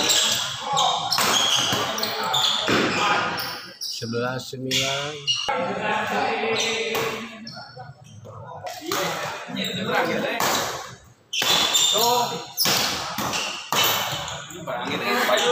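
A racket smacks a shuttlecock back and forth.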